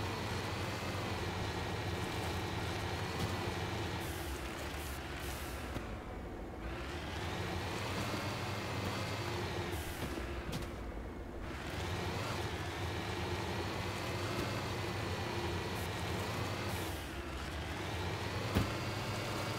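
A vehicle's engine hums steadily, its pitch rising and falling as it drives over rough ground.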